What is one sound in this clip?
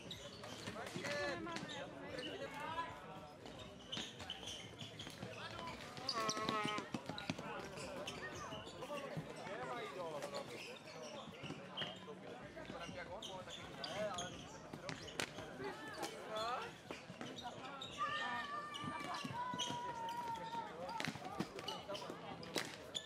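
Floorball sticks click against a plastic ball.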